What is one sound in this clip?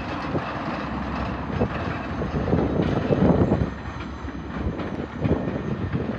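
A diesel train rumbles past at a distance.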